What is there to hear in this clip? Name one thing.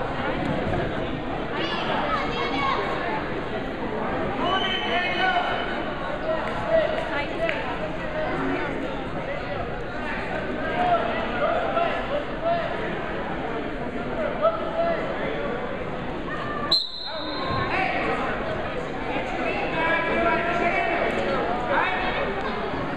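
A crowd of spectators chatters and shouts in a large echoing gym.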